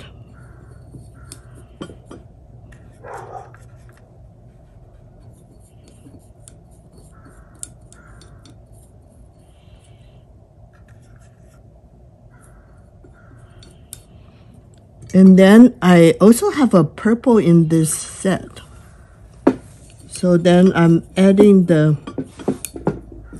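A paintbrush taps and dabs lightly against a plastic palette.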